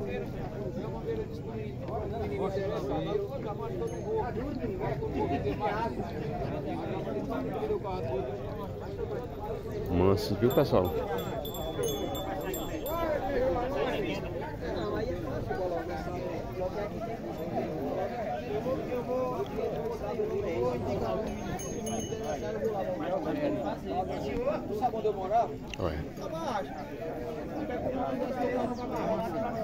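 A crowd of men chatters outdoors.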